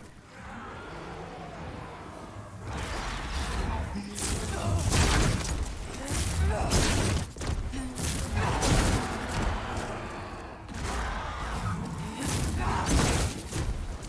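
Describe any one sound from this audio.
A fiery spell whooshes and crackles.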